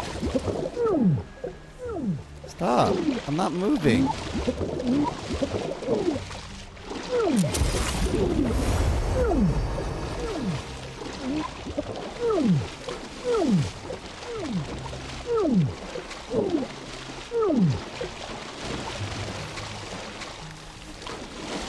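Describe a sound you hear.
Water splashes and ripples as something wades through it.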